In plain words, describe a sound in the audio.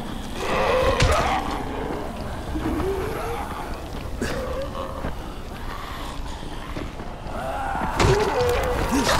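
A blunt weapon strikes with heavy thuds.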